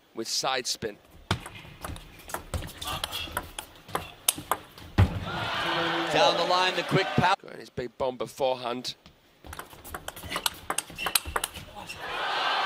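A ping pong ball clicks sharply back and forth off paddles and a table.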